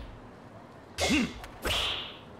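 A golf club strikes a ball with a sharp whack.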